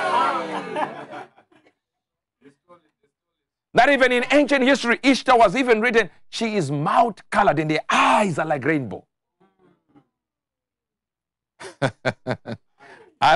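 A man speaks with animation into a microphone, preaching in bursts with pauses.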